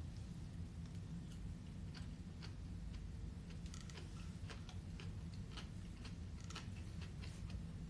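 A young man chews and slurps food.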